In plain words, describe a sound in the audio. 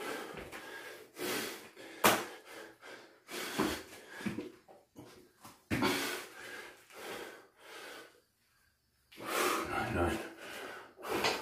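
Bare feet thump on a floor mat.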